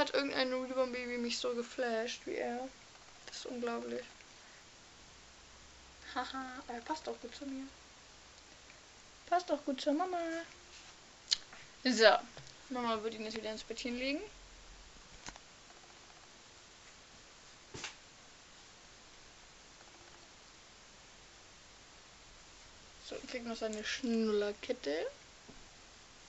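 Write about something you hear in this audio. A young woman talks softly and warmly close to the microphone.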